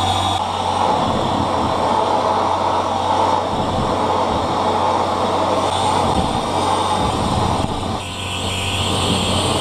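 A flame bursts with a loud whoosh.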